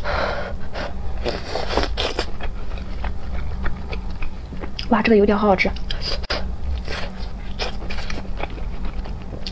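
A young woman chews soft noodles wetly close to a microphone.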